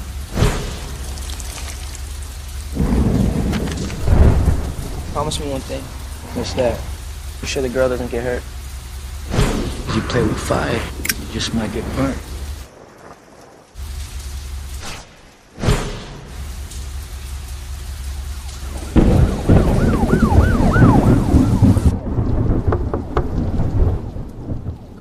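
Upbeat music with a thumping beat plays.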